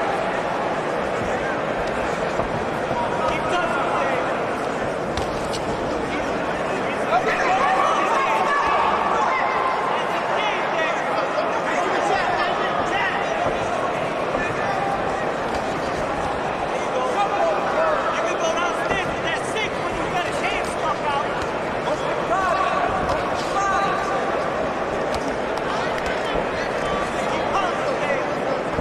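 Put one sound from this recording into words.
A crowd in a large hall shouts and cheers throughout.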